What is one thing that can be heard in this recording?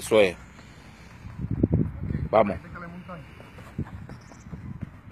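Footsteps thud on grass as men run.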